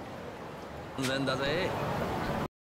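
Busy city street noise hums in the background.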